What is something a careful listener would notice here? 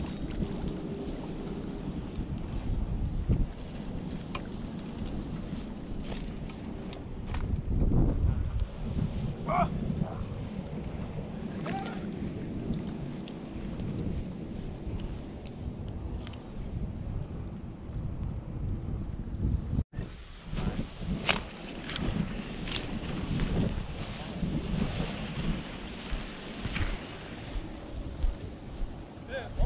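Wind buffets the microphone outdoors in low rumbling gusts.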